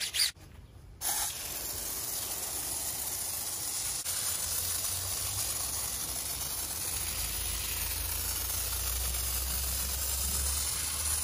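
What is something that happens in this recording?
A pump sprayer hisses steadily, spraying foam.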